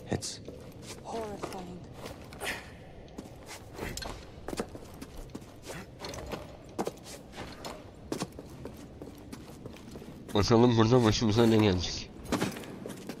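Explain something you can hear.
Footsteps patter quickly on stone.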